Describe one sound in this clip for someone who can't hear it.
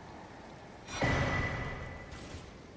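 A bright chime rings out once.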